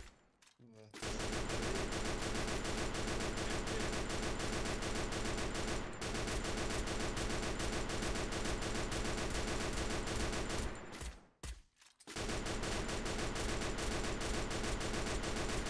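A rifle fires in rapid, steady bursts.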